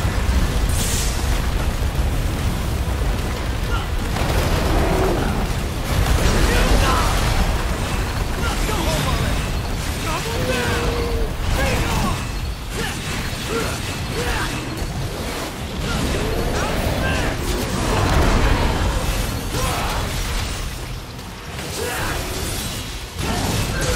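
Blades slash and clang in quick hits.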